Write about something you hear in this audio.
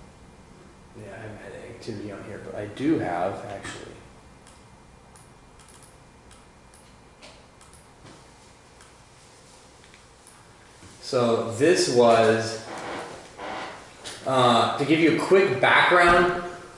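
A man speaks nearby in short bursts.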